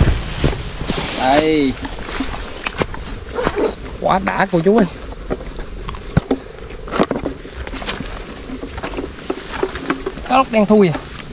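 A young man speaks close by, calmly.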